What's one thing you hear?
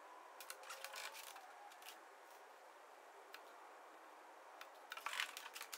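Small metal parts clink and rattle as hands handle them close by.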